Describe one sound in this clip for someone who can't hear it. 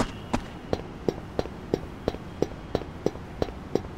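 Footsteps tap steadily on a hard pavement.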